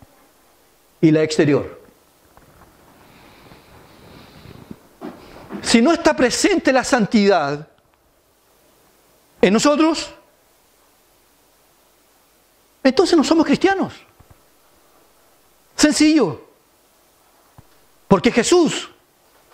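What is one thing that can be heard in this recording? A middle-aged man speaks with animation through a microphone, in short bursts with pauses.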